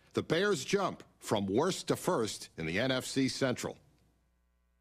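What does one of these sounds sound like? A middle-aged man speaks clearly and with animation into a microphone.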